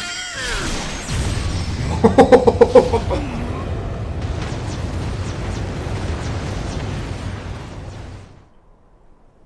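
A loud magical blast roars and rumbles.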